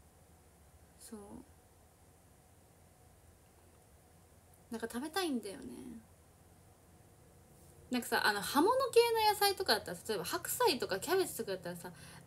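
A young woman speaks calmly and close by, in short bursts with pauses.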